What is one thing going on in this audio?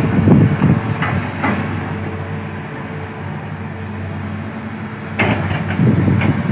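Excavators crunch and snap through dense plants and branches.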